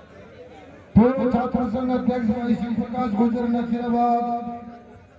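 A man chants loudly and steadily through a loudspeaker.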